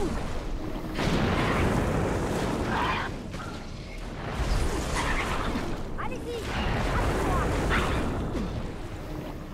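Magical blasts and explosions crackle and boom in a game battle.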